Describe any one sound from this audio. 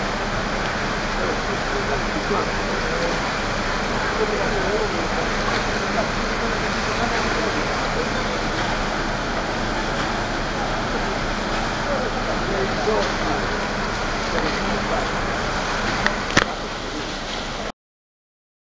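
Floodwater rushes and churns along a street.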